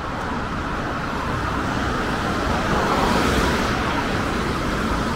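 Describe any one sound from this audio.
A car drives close by and passes.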